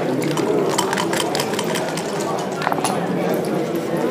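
Dice rattle and tumble across a board.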